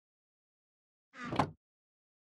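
A wooden chest creaks shut.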